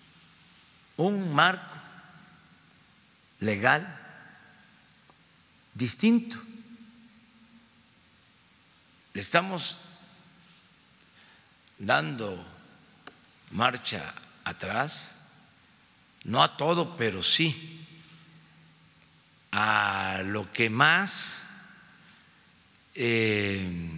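An elderly man speaks slowly and firmly into microphones, with long pauses between phrases.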